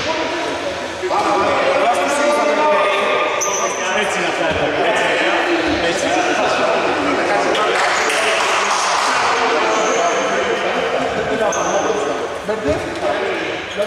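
Men call out and talk in a large echoing hall.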